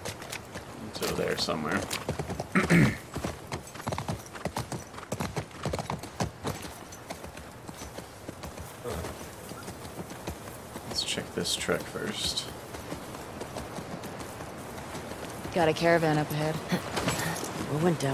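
A young man talks close to a headset microphone.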